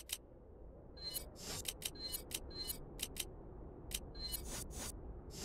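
Short electronic menu beeps tick quickly, one after another.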